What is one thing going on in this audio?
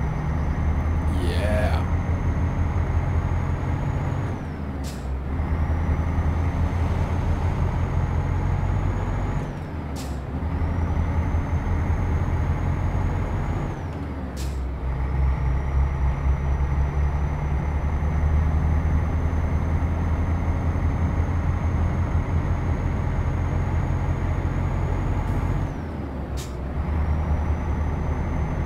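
A truck engine drones steadily, dropping briefly as gears change.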